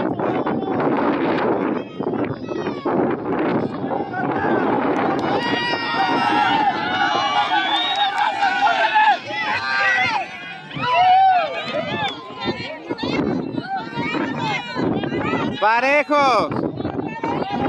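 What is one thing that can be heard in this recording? A crowd of men and women shouts and cheers loudly outdoors.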